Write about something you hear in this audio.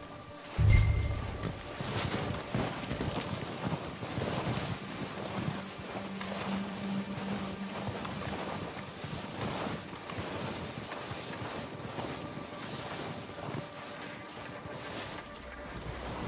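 Boots crunch through deep snow in steady steps.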